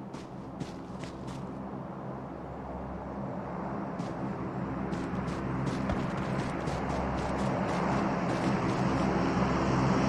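Footsteps tread quickly through grass.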